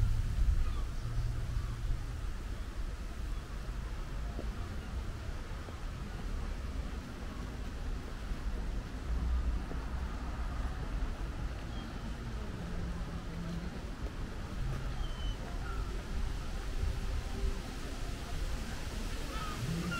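Wind rumbles and buffets steadily outdoors.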